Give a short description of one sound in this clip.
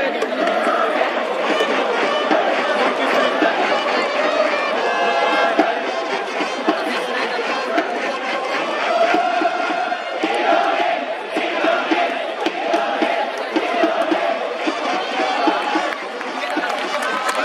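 Drums and trumpets play a rhythmic cheering tune in the stands.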